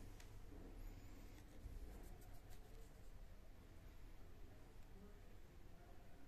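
Fabric rustles softly as a hand rubs and lifts it.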